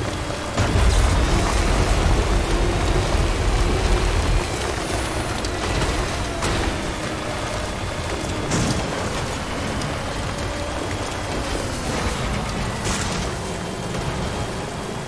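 An off-road vehicle's engine rumbles steadily.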